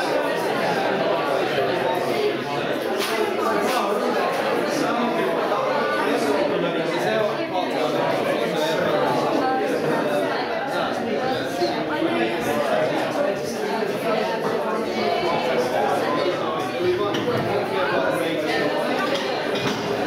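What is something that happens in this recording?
A crowd of men and women chat all at once nearby in a hall with some echo.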